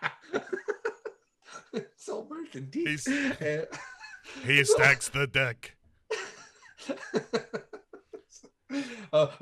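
A man talks and laughs over an online call.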